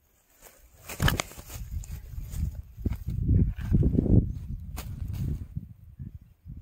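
A fish flaps and thumps on dry grass.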